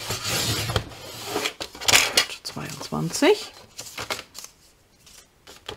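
Paper rustles and slides as hands move it.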